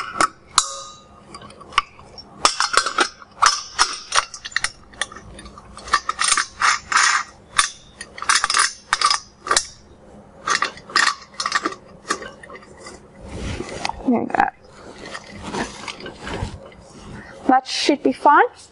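Metal parts clink and clank as a steel pot is handled.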